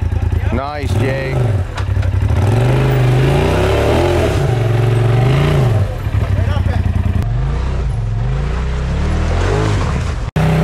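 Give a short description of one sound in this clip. An off-road vehicle's engine revs up and down as it climbs.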